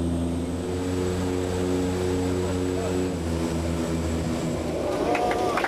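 An engine drones steadily up close.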